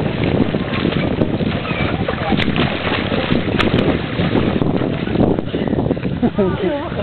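A swimmer splashes through water with kicking strokes.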